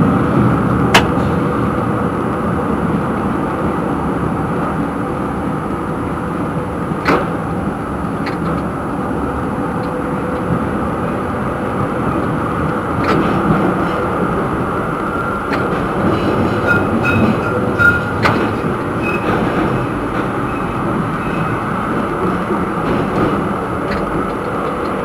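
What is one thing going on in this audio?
Tram wheels clack sharply over rail joints now and then.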